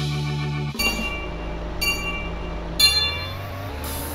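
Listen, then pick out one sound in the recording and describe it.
A countdown beeps three times, once a second, the last beep higher.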